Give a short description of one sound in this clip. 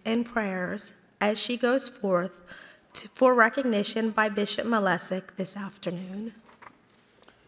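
A woman reads aloud through a microphone in an echoing hall.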